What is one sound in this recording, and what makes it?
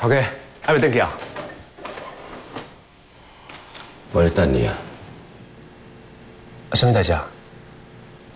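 A young man speaks calmly and briefly, close by.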